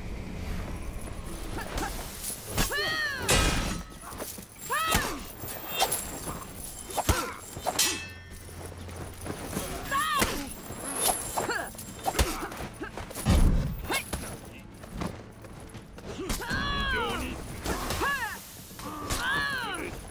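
Heavy blows thud against armour.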